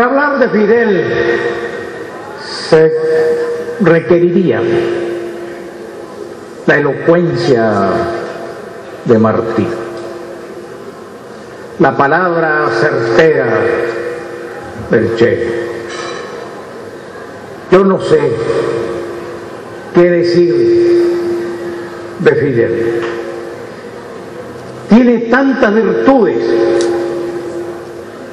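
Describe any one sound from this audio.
An elderly man speaks slowly and forcefully into a microphone, heard through loudspeakers in an echoing hall.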